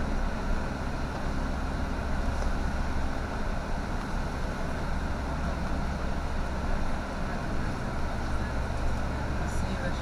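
A bus engine rumbles steadily from inside while driving.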